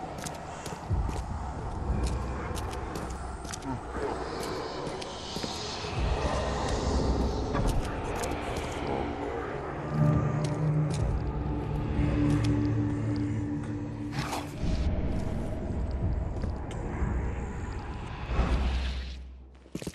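Footsteps tread on wet stone.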